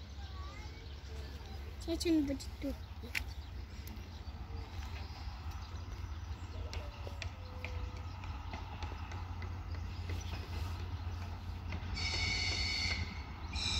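A freight train rumbles slowly along the tracks.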